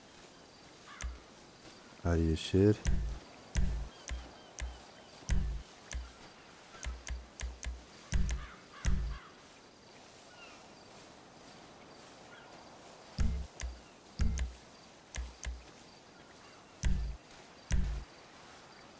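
Game menu clicks and beeps sound as options are selected.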